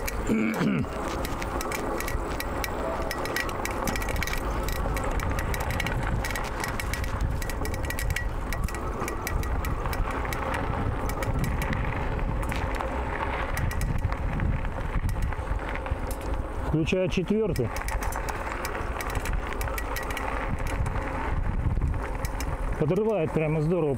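Bicycle tyres rattle and crunch over a bumpy dirt track.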